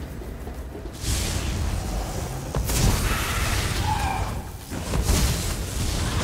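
Magic blasts crackle and zap in quick bursts.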